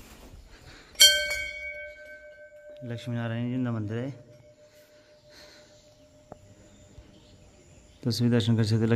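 A temple bell rings once and its tone slowly fades.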